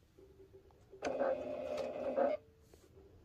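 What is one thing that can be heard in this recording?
A sewing machine runs in a short burst.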